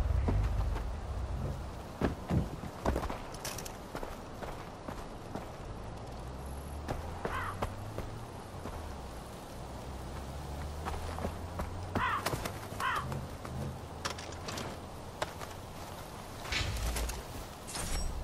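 Footsteps crunch over dirt and grass.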